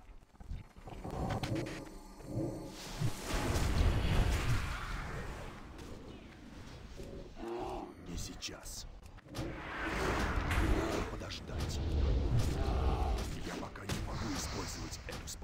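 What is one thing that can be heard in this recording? Magic blasts and fighting noises crackle and thud.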